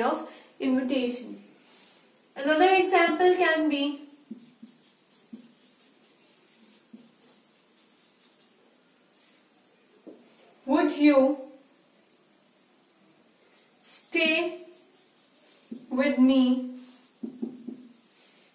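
A young woman speaks clearly through a close microphone, in short phrases with pauses.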